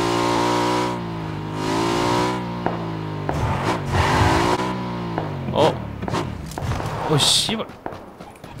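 A motorcycle engine roars and revs up and down.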